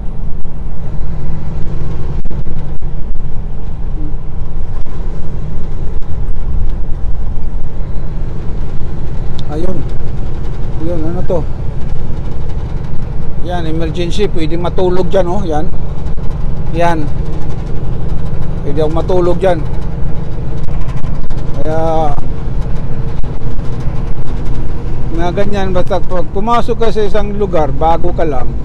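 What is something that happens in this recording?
A diesel semi truck's engine drones steadily, heard from inside the cab while cruising on a highway.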